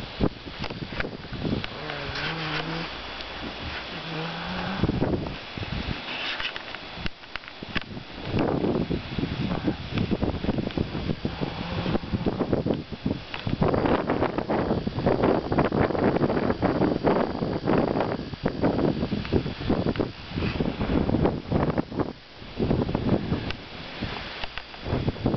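Strong wind gusts and rustles through trees outdoors.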